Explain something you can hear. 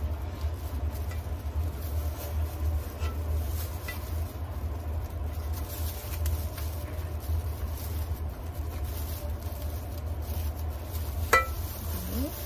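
A plastic paddle scrapes and knocks against a metal pot.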